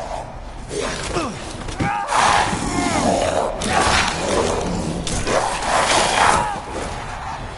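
A monster screeches and snarls up close.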